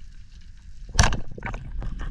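A speargun fires with a sharp snap underwater.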